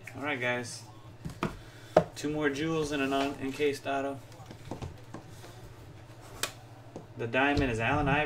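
Cardboard and plastic rustle as a box is handled.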